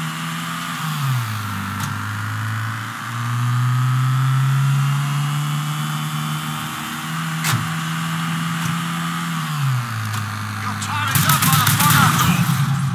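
A car engine hums steadily, its pitch rising and dropping as it shifts gears.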